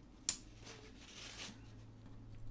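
A hand rubs across paper.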